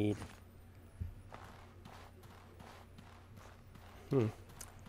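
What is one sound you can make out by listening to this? Footsteps swish steadily through grass.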